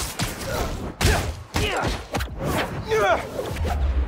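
Heavy punches land with dull thuds.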